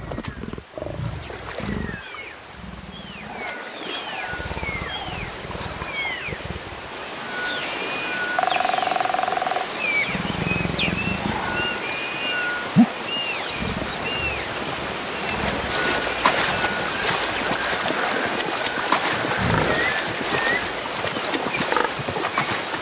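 Water splashes as an ape wades through a river.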